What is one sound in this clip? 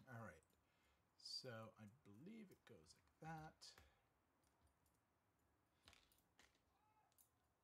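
Small plastic pieces click together.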